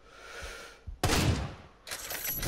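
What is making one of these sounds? A sniper rifle fires a single shot.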